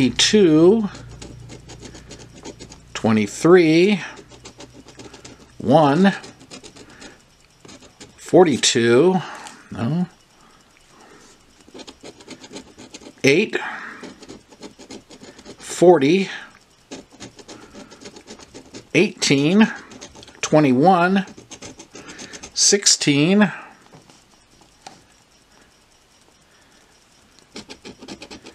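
A coin scratches and scrapes across a card.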